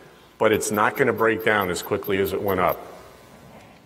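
A middle-aged man speaks calmly into a microphone.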